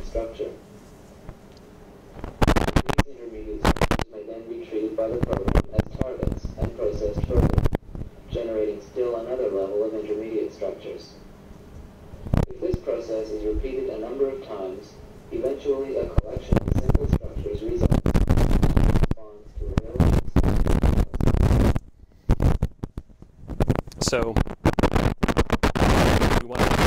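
A man speaks calmly, lecturing to an audience.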